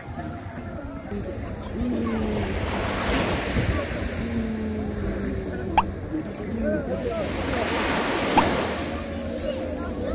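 Small waves wash up onto a sandy shore and break with a soft hiss.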